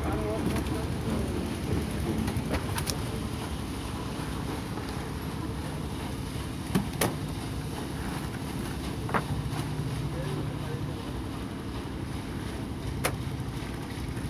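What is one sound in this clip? Fish thud and slap onto a wet deck.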